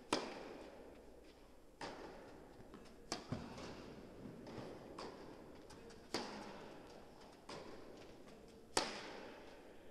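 Tennis balls are struck hard with rackets, echoing in a large hall.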